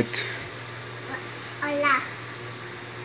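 A young girl speaks briefly and brightly close by.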